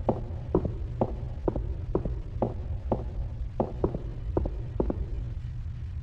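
Footsteps thud at an even walking pace.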